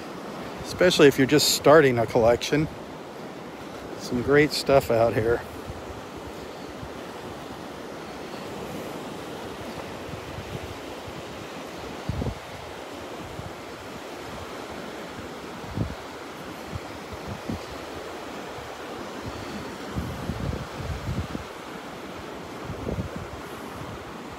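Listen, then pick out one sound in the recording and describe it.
Wind gusts across the microphone outdoors.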